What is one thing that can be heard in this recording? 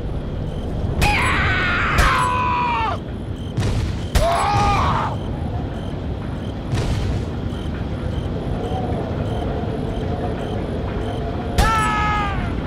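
A gun fires single shots.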